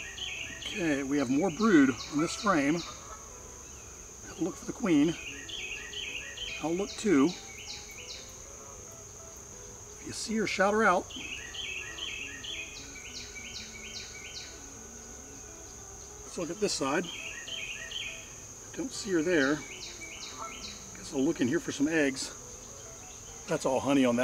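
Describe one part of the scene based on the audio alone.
Many bees buzz softly.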